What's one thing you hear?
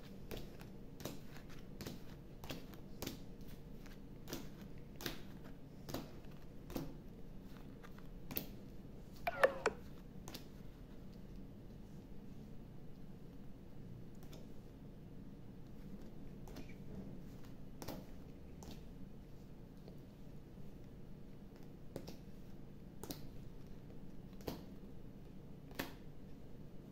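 Playing cards are laid down on a table with soft taps and slaps.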